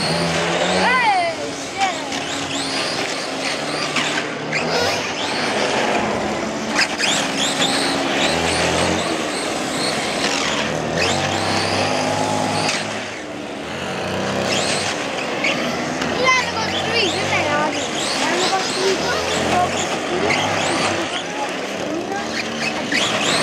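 A toy car's electric motor whines, rising and falling as it speeds across pavement.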